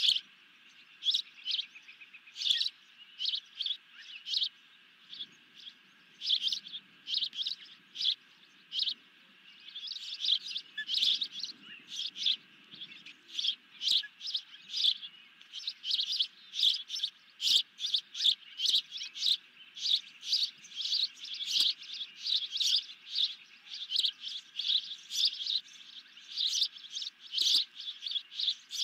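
A young bird chirps rapidly and shrilly, over and over.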